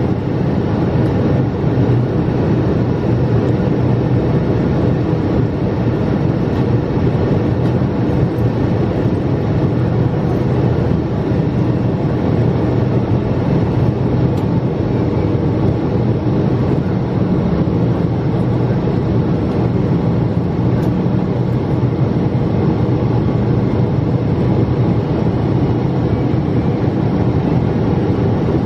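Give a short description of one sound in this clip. A jet engine roars steadily, heard from inside an airliner cabin.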